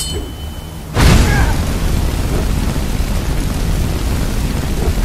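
Fire roars and crackles in a steady rush.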